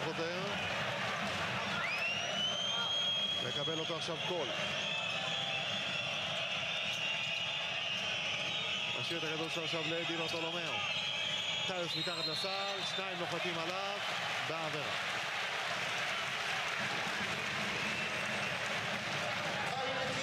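A large crowd cheers and roars throughout in a big echoing arena.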